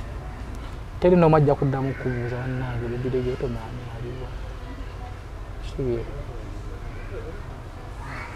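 A man speaks calmly and close by in conversation.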